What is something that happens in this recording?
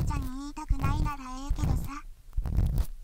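A young girl speaks cheerfully in a high, bright voice.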